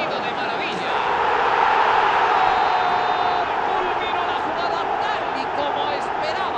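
A stadium crowd cheers louder as a goal is scored.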